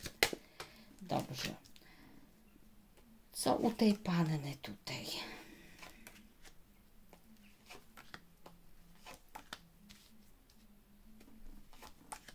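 Cards are laid down one by one on a table with soft slaps.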